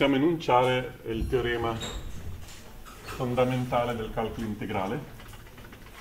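A man lectures calmly nearby.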